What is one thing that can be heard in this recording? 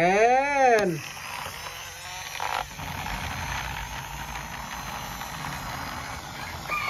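A toy car's small motor whirs as its wheels roll across a wooden surface.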